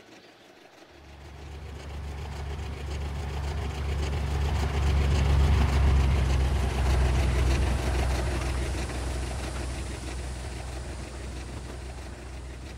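A diesel locomotive engine drones loudly as a train passes close by.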